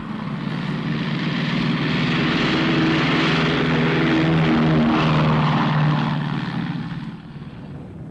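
Aircraft engines roar loudly as a plane flies low overhead.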